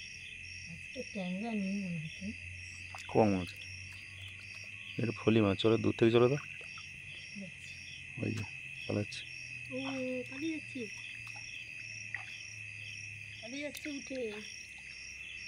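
Frogs croak nearby in short bursts.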